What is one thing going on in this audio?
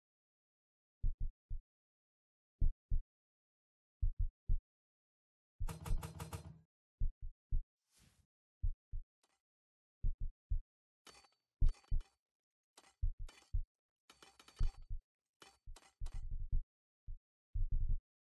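Heavy footsteps thud in slow, uneven steps.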